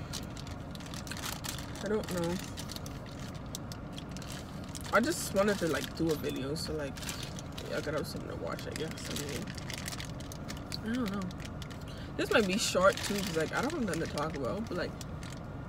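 A paper wrapper crinkles and rustles as it is unwrapped.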